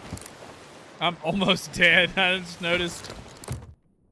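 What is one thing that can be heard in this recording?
A man speaks into a microphone close by, calmly and casually.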